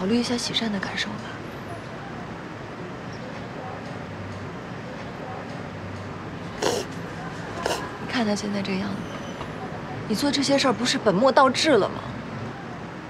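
A young woman speaks urgently and pleads.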